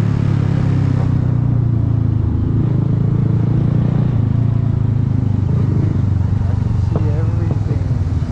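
An engine rumbles steadily close by.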